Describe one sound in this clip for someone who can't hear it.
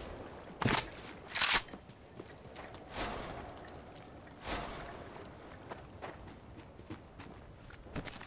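Footsteps rustle through grass and brush.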